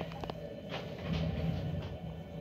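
A heavy vehicle thuds into sand and scrapes along.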